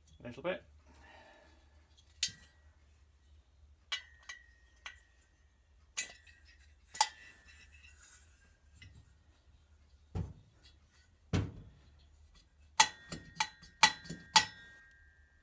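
Metal engine parts clink and clatter as they are handled.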